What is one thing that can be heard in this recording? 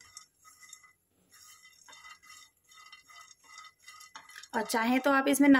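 A spatula scrapes and stirs nuts in a pan.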